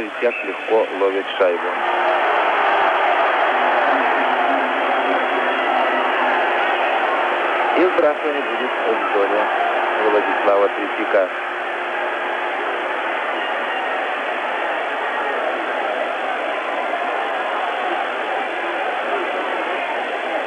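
A large arena crowd roars and cheers.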